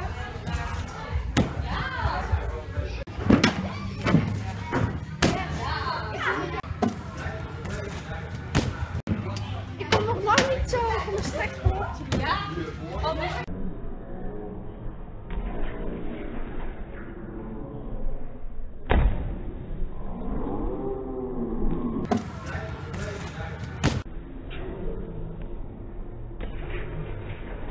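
A springboard thuds as a gymnast bounces and lands on mats.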